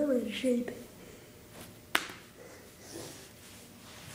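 A hand slaps on a hard floor.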